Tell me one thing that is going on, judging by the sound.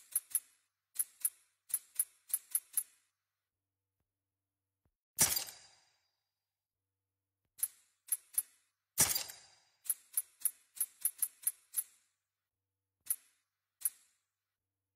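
Short, bright menu clicks sound again and again.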